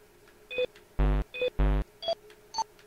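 Low electronic buzzes sound when a choice is refused.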